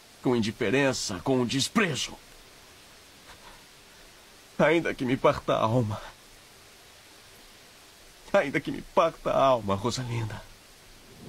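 A man speaks tearfully and close by, in short emotional bursts.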